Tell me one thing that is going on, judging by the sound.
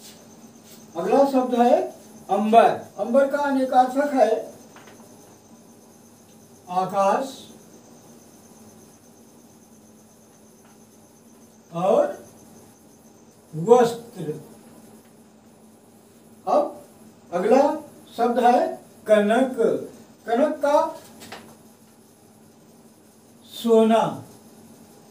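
A middle-aged man speaks calmly and clearly in short phrases, close by.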